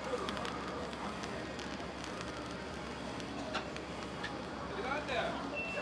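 Whipped cream hisses softly from a nozzle.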